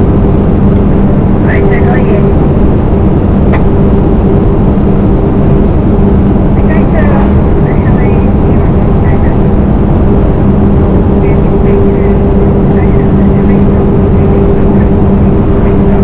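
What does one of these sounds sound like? Wind rushes loudly past the truck.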